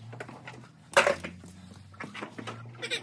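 Boots step on a wet concrete floor.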